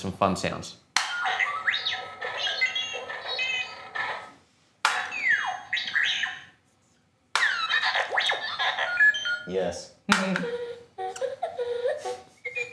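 A toy robot beeps and warbles in electronic chirps.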